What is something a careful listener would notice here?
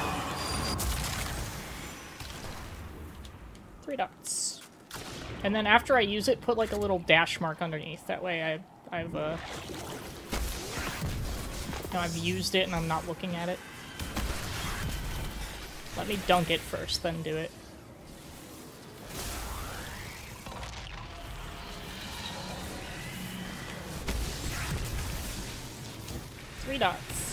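Gunfire and explosions from a video game crackle and boom.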